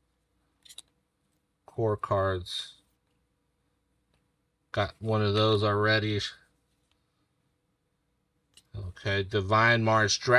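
Trading cards rustle and slide softly as hands sort through them.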